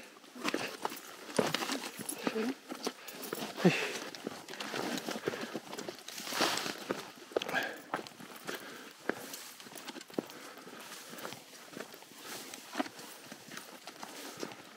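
Footsteps crunch on a dry path.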